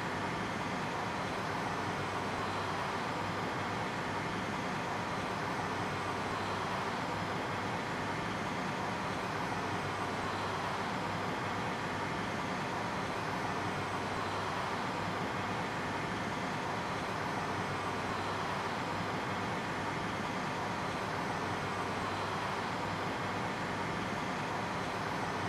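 Cockpit equipment hums steadily.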